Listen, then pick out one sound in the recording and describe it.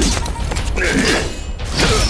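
Metal blades clash with a sharp ring.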